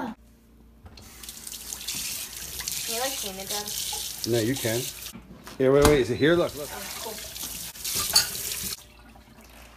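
Water runs into a sink.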